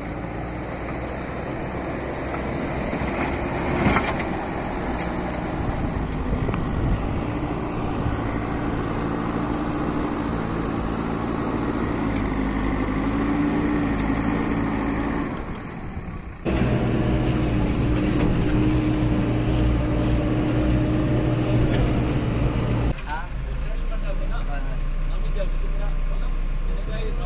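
A diesel engine rumbles and drones up close.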